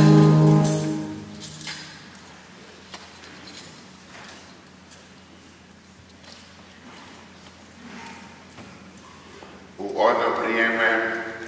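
An elderly man chants in a large echoing hall.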